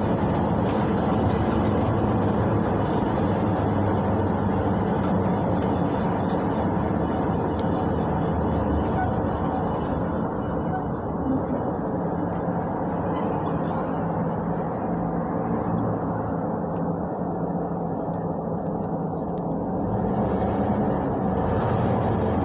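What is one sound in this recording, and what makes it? A bus body rattles and creaks over the road.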